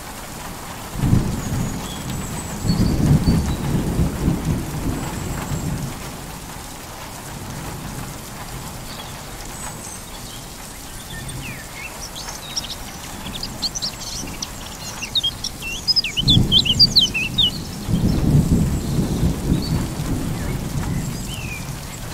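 Thunder rumbles deeply in the distance, rolling and fading.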